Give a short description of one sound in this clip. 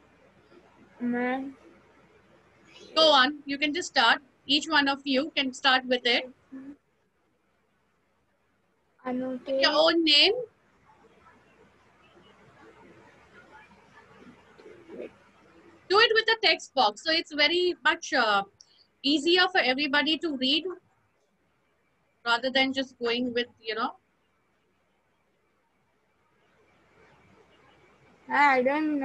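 A young person speaks over an online call, with pauses between phrases.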